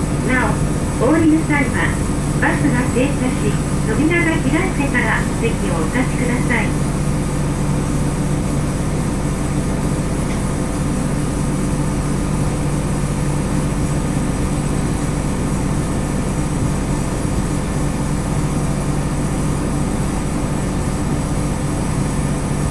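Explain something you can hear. A bus engine hums steadily at idle.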